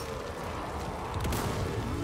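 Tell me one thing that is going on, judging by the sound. A gunshot bangs.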